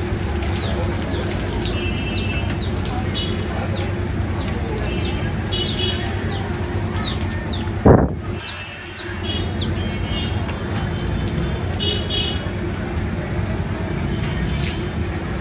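Water poured from a mug splashes onto a carcass.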